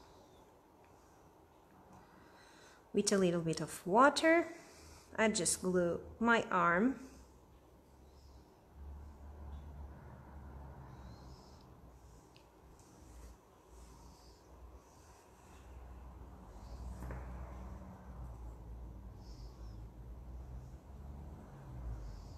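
Hands softly press and smooth soft dough.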